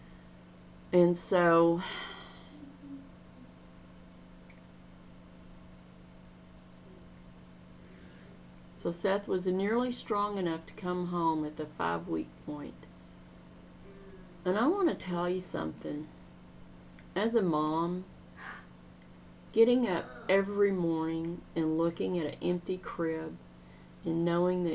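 A middle-aged woman speaks calmly and earnestly into a microphone close by, with pauses.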